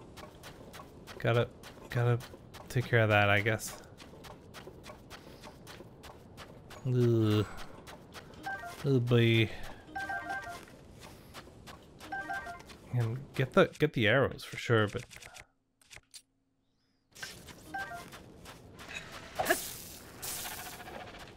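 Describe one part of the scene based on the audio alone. Footsteps shuffle through soft sand.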